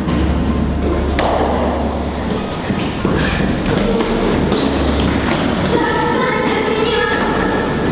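Footsteps run up concrete stairs in an echoing stairwell.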